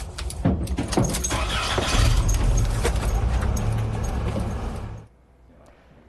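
A delivery truck rumbles and rattles loudly from inside as it drives.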